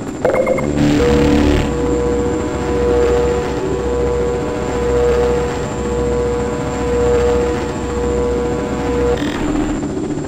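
A wall charger hums steadily as it recharges.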